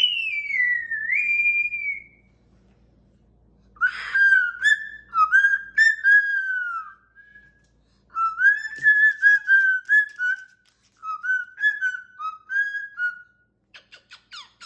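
A cockatoo squawks and whistles in short, rising and falling calls.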